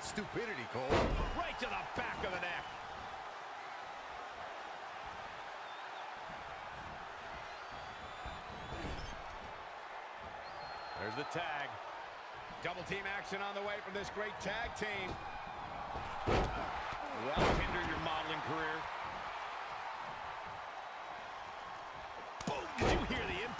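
Heavy thuds of bodies slamming onto a wrestling ring mat ring out now and then.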